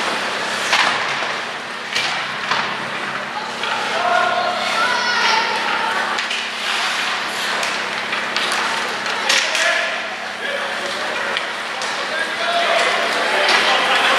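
Ice skates scrape and carve across the ice in an echoing arena.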